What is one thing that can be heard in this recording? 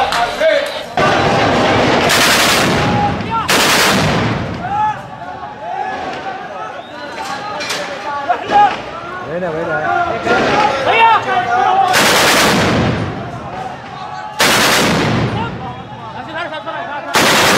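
A heavy gun fires loud booming blasts that echo between buildings.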